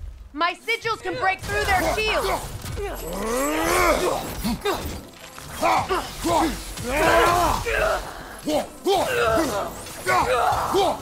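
Weapons clash and strike with heavy blows.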